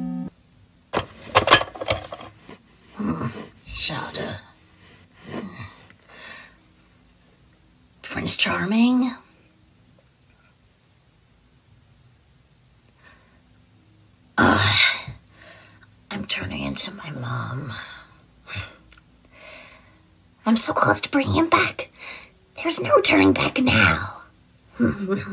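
A young man speaks with animation through a microphone.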